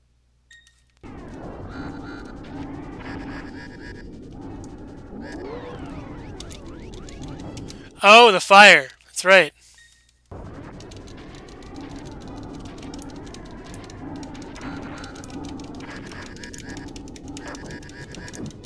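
Electronic video game music plays.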